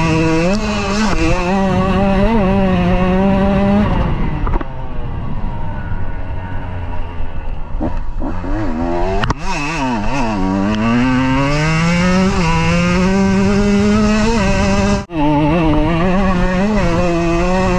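Wind rushes past the rider.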